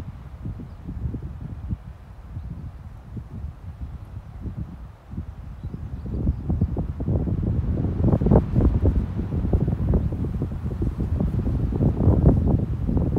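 Wind gusts and rumbles outdoors, growing stronger.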